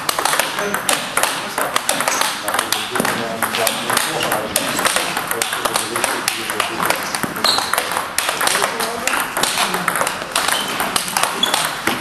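Table tennis balls click rapidly against paddles and a table in an echoing hall.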